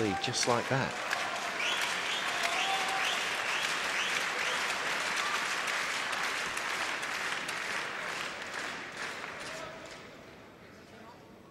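A large crowd applauds in an echoing hall, then fades out.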